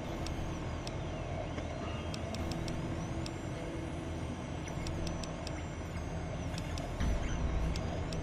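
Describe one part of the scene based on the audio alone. Soft electronic clicks tick one after another.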